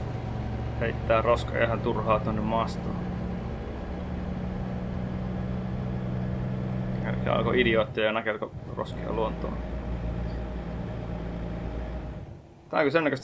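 A truck engine hums steadily at cruising speed.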